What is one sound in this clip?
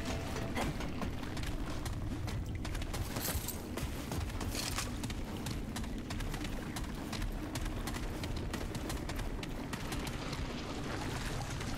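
Boots thud in quick, steady footsteps on a hard floor.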